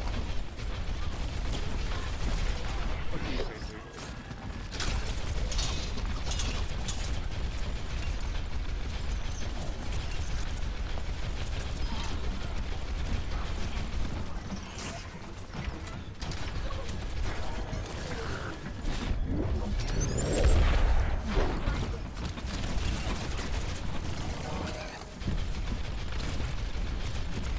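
Guns in a video game fire in rapid bursts.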